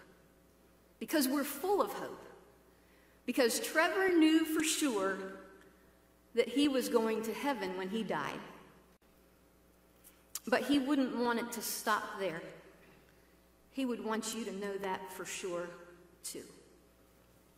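A woman speaks slowly and solemnly into a microphone in a large echoing hall.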